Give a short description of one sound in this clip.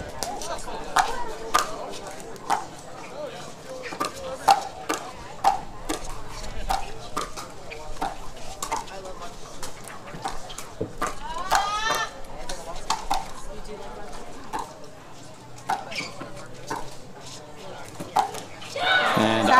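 Paddles strike a plastic ball in a quick rally, with sharp pops.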